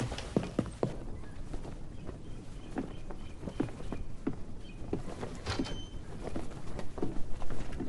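A flag flaps and snaps in the wind.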